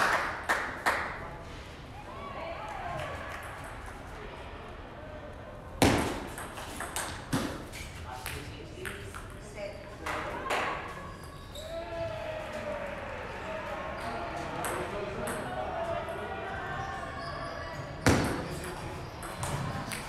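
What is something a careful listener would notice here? A table tennis ball clicks back and forth on paddles and a table in an echoing hall.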